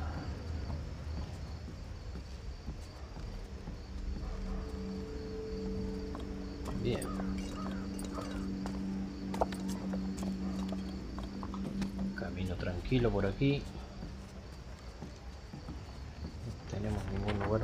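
Footsteps thud softly on wooden boards and stone.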